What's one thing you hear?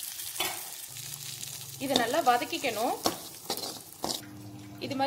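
A metal spoon scrapes and clinks against a pan as food is stirred.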